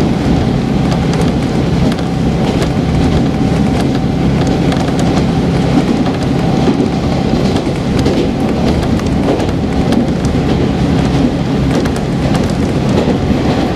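A train rumbles steadily along the track, heard from inside a carriage.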